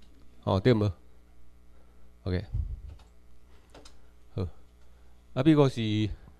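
A man speaks through a microphone in a large room, in short phrases with pauses.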